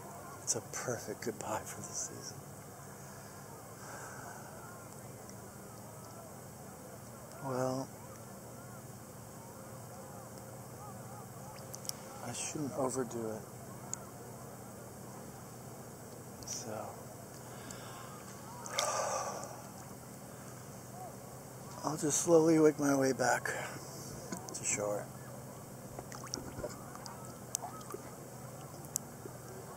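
Water laps and splashes gently around a swimmer.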